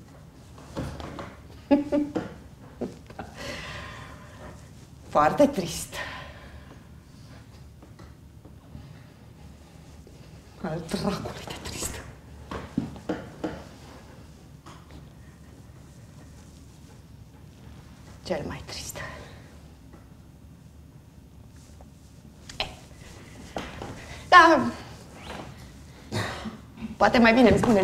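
An elderly woman speaks slowly and sadly, with long pauses, in a large room.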